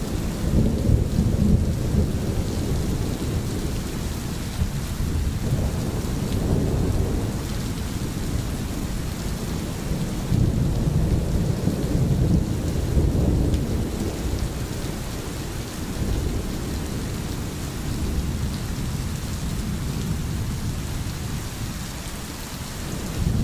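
Rain falls steadily on the forest.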